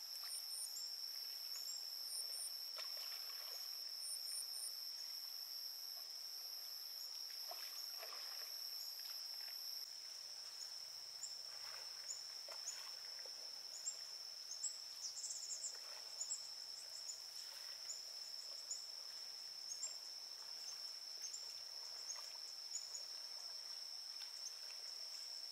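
An oar dips and splashes softly in calm water.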